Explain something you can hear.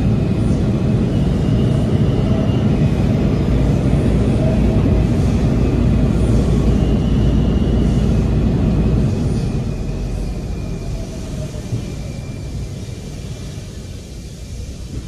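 A subway train rumbles loudly along the tracks, then slows and quietens.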